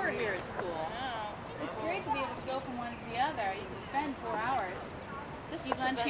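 Women talk calmly nearby.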